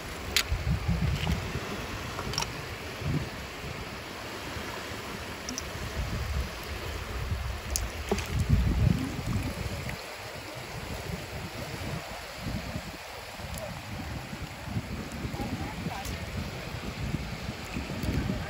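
A hand splashes briefly in shallow water.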